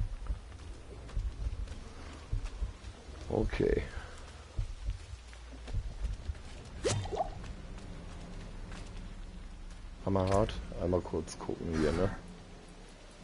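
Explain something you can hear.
Weapons clash and magic bursts in a fight.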